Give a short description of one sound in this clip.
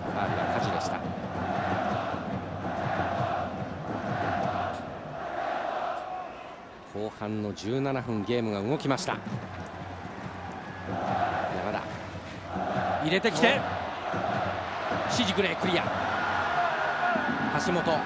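A large stadium crowd chants in steady pulses.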